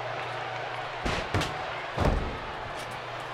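Bodies slam hard onto a wrestling mat.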